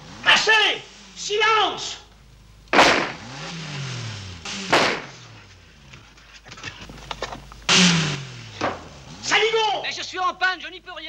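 An elderly man shouts angrily from close by.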